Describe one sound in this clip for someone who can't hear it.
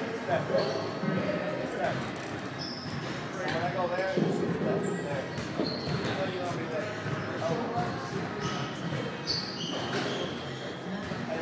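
A baseball bat cracks against a ball.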